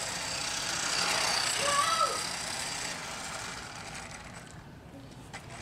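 A small electric toy car whirs as it speeds across pavement and fades into the distance.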